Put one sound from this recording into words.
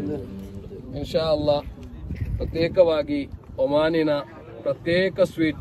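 A man speaks up clearly close by.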